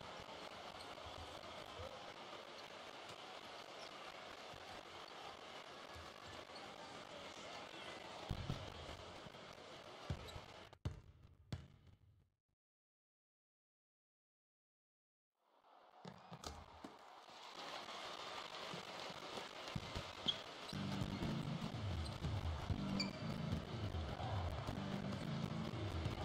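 An arena crowd murmurs and cheers.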